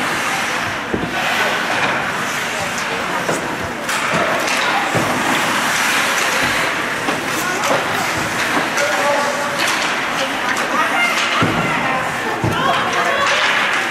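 A puck thuds against the boards of an ice rink.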